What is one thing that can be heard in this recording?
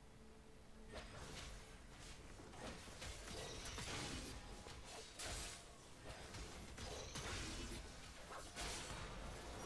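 Game battle effects clash and whoosh.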